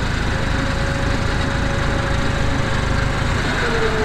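A car engine runs.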